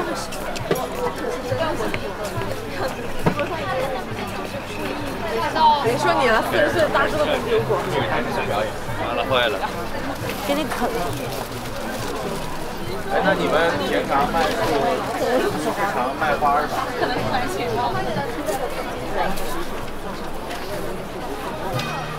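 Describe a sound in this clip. A crowd of people chatter nearby, outdoors.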